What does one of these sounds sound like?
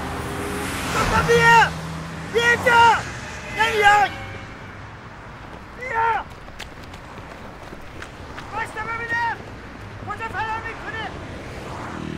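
An elderly man shouts loudly in bursts.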